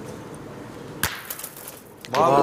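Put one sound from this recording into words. A heavy metal ball thuds onto gravel.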